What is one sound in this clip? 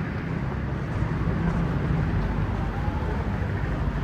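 A motor scooter approaches and passes nearby.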